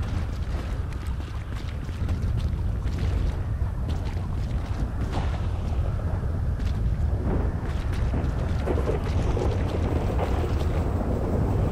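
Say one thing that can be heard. Footsteps splash on wet pavement.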